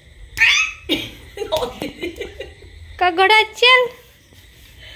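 A baby squeals and babbles excitedly close by.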